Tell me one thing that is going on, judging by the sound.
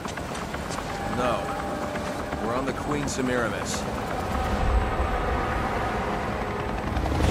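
A man speaks calmly over a radio headset.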